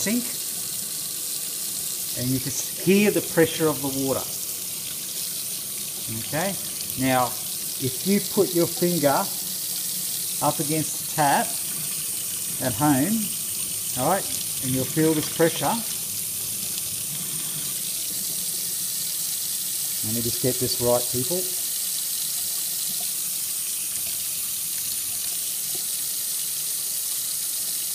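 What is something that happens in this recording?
Water runs steadily from a tap into a metal sink.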